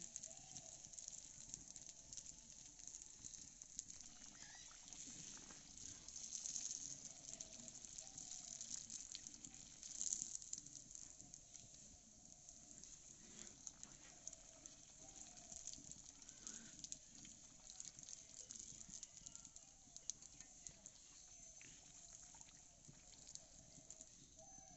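Hot oil sizzles and crackles steadily as dough fries.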